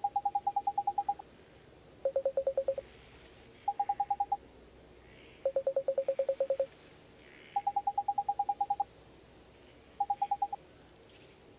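Rapid electronic blips chatter in short bursts, alternating between a higher and a lower pitch.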